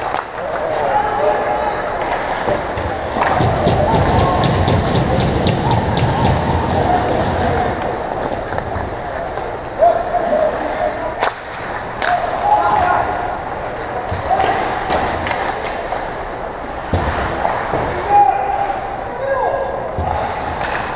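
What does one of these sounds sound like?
Young players shout to each other across the rink.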